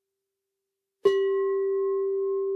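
A singing bowl is struck and rings out with a bright, sustained tone.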